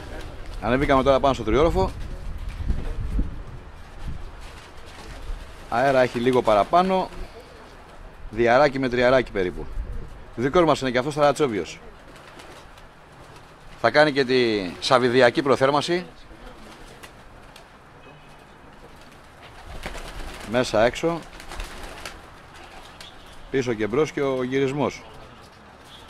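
A man speaks loudly in short bursts nearby, outdoors.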